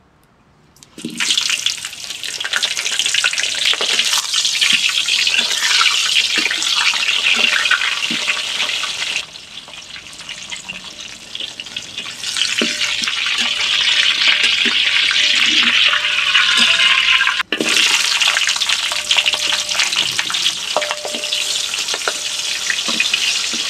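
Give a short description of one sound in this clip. Hot oil sizzles loudly as food fries.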